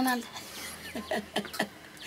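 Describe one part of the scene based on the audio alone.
An elderly woman laughs.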